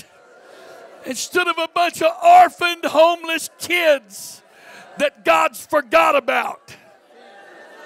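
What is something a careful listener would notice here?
A middle-aged man speaks with animation through a microphone and loudspeakers in an echoing hall.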